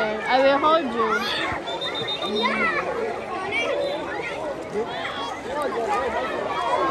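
Water sloshes as a man wades through a pool.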